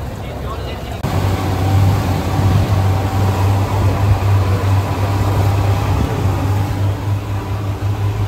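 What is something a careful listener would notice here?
A boat's outboard motor drones loudly and steadily.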